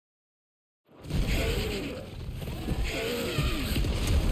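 A huge beast growls and rumbles deeply.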